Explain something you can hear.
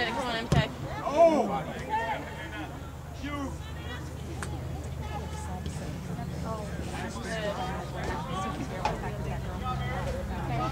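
Men chat casually close by outdoors.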